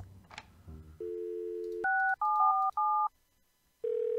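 Telephone keypad tones beep as numbers are dialed.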